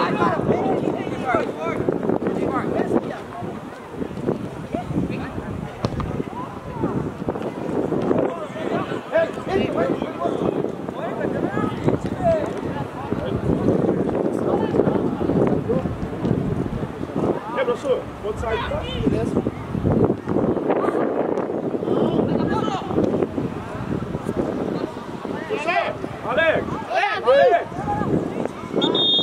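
Young players shout to each other on an open outdoor pitch.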